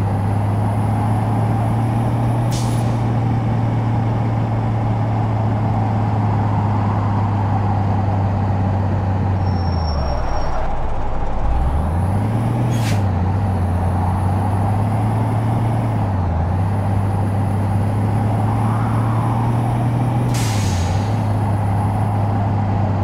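A heavy truck engine drones steadily, dipping low as it slows and climbing again as it speeds up.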